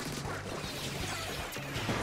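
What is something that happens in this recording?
A loud charged blast bursts with a whoosh.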